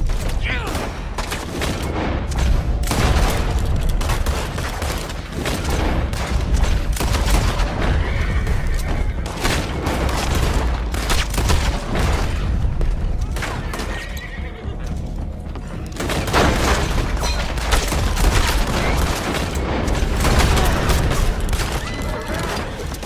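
Revolver shots crack loudly, one after another.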